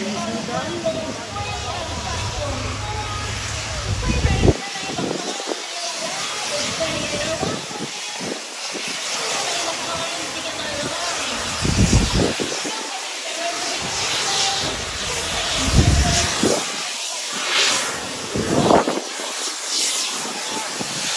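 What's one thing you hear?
A crowd of people chatters on the platform outdoors.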